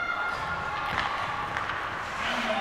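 A hockey stick slaps a puck.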